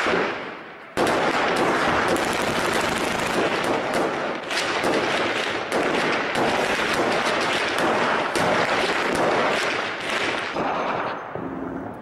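A loud explosion booms, and debris roars down in a long rumble.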